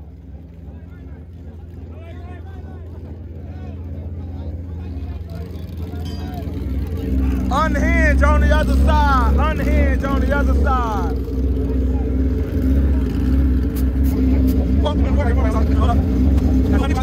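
A motorcycle engine rumbles loudly and grows louder.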